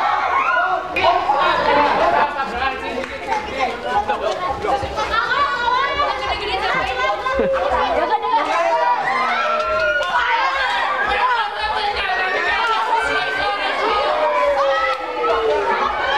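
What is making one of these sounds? A crowd of children shout and cheer excitedly outdoors.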